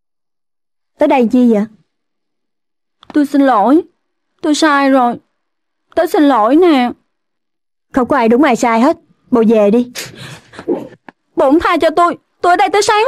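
A young woman speaks tensely and with rising anger, close by.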